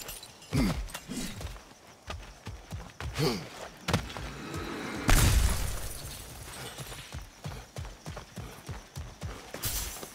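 Heavy footsteps thud on dirt and stone.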